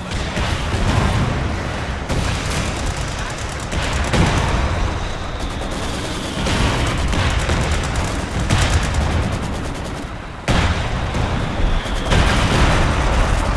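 Gunfire crackles and rattles in a battle.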